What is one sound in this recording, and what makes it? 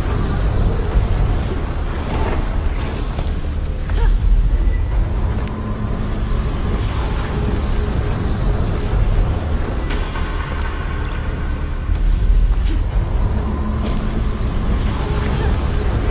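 Lava rumbles with a low, steady drone.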